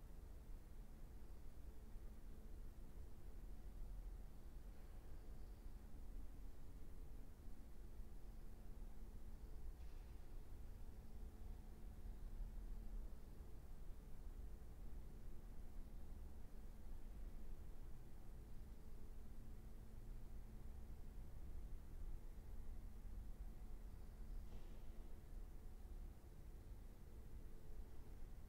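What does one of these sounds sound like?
A cello plays slow, sustained notes in an echoing hall.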